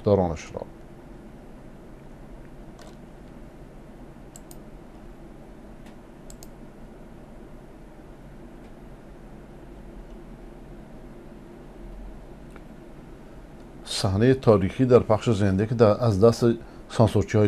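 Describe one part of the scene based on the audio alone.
An elderly man speaks calmly into a close microphone.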